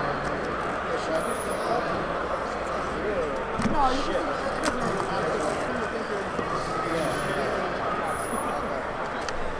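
Plastic wrapping crinkles as hands handle a box.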